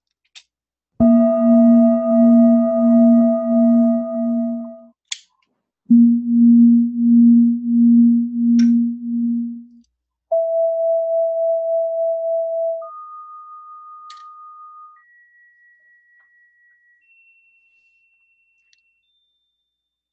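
Steady electronic test tones play through a speaker, stepping higher in pitch and fading.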